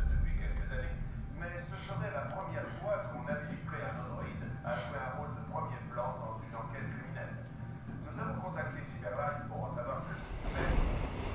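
A man speaks calmly and evenly.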